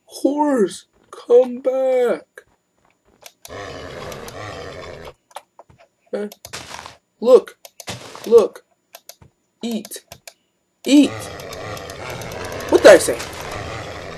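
A horse neighs again and again.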